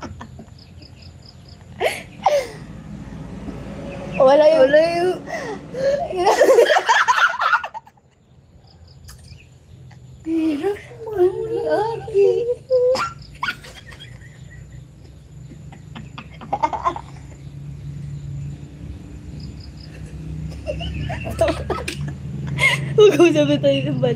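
Two young women laugh loudly close by.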